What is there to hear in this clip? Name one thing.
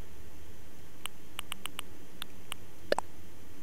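Short soft blips tick quickly as a menu cursor moves.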